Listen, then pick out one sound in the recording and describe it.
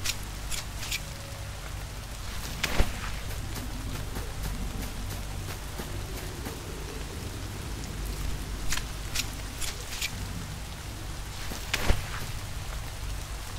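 A knife stabs wetly into flesh.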